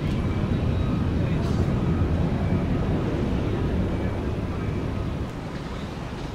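A jet airliner roars overhead as it climbs away.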